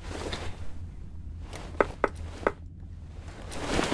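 A metal helmet clinks as hands pick it up and turn it over.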